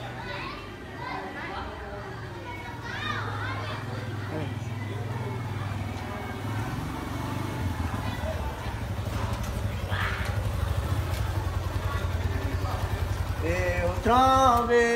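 A motorcycle engine rumbles as it approaches and idles close by.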